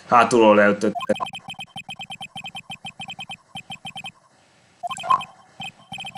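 Rapid electronic blips chatter quickly.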